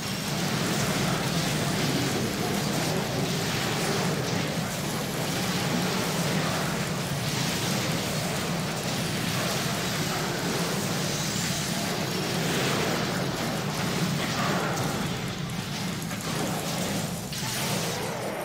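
Game combat sounds clash and crackle.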